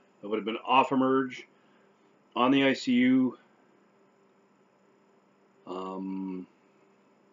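A middle-aged man speaks close to a microphone in short, calm phrases.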